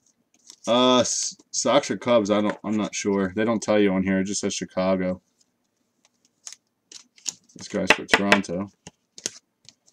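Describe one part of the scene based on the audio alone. Plastic card sleeves crinkle and rustle in hands.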